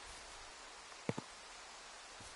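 A small wrapped snack is picked up with a short click.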